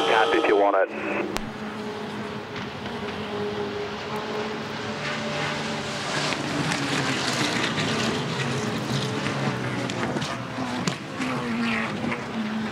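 Racing car engines drone from a distance.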